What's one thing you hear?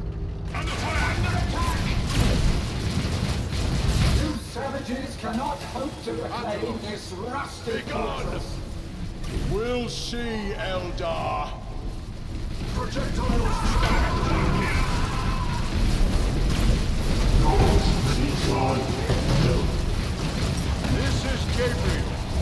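Gunfire and energy blasts crackle in a game battle.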